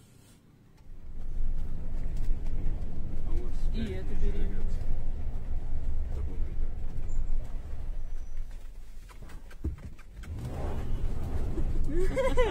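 A car engine rumbles low and steadily from inside the car.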